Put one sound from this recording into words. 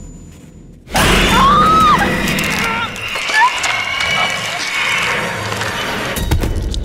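A young woman screams in terror.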